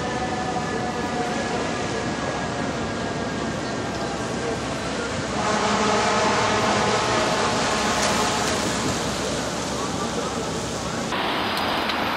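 A fire engine's siren blares loudly.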